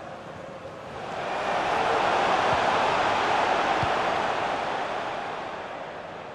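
A stadium crowd roars, swelling and then slowly fading.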